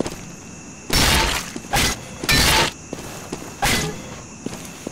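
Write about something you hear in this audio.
An axe smashes into a wooden crate, splintering it.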